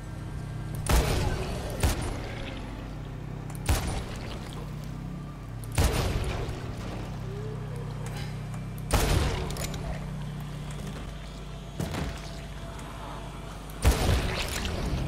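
Heavy gunshots boom one at a time, with a short echo after each.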